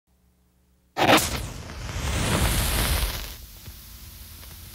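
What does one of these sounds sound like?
A flame hisses and crackles steadily.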